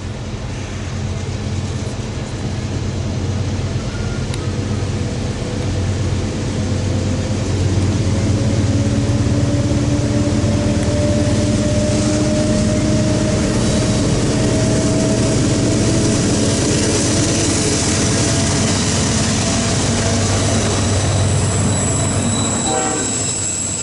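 Diesel freight locomotives rumble as they approach and pass.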